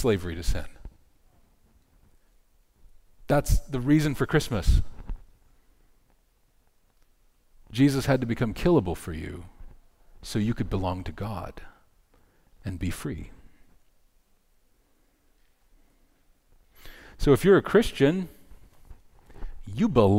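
A middle-aged man speaks calmly into a headset microphone, with pauses between phrases.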